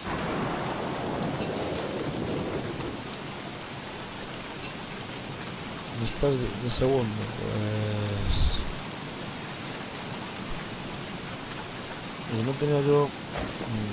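Rain falls steadily.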